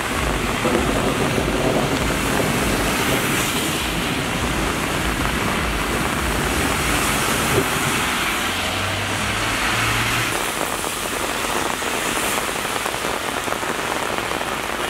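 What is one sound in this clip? Car tyres hiss and splash through standing water as they pass close by.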